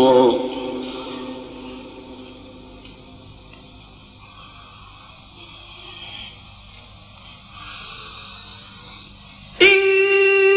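A man chants in a long, melodic voice through a microphone, with echo.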